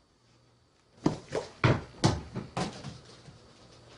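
A cat's paws patter quickly across a hard floor.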